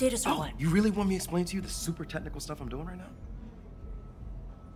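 A young man answers sarcastically.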